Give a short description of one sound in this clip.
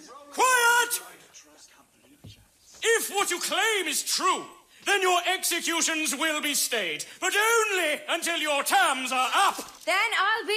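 A man shouts sternly for quiet.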